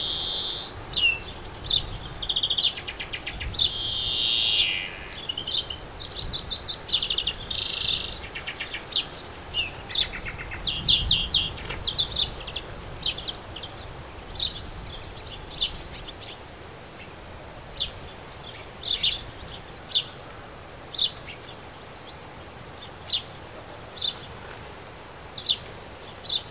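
Small birds chirp and sing close by outdoors.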